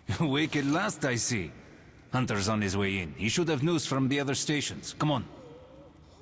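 A man speaks calmly in a low voice, close by.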